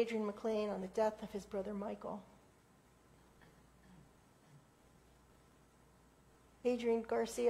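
An elderly woman speaks calmly into a microphone in an echoing room.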